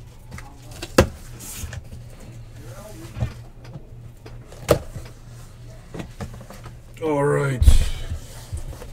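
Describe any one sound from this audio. A cardboard box thumps and scrapes as it is moved.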